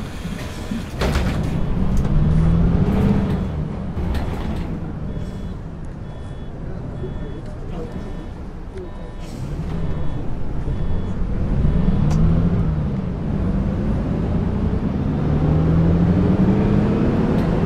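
A diesel city bus pulls away and accelerates through its automatic gear changes.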